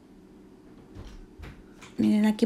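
A canister knocks lightly against a countertop.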